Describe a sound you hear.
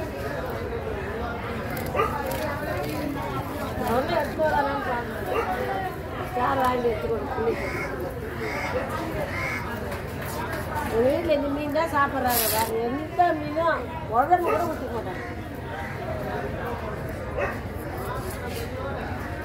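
A knife blade scrapes and slices through fish flesh.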